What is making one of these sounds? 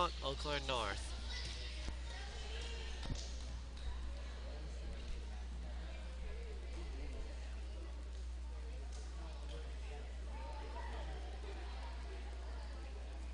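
Young women chatter quietly in the background.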